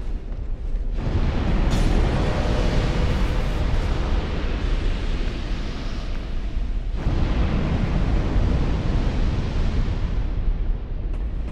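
Fireballs burst with a loud, rushing roar.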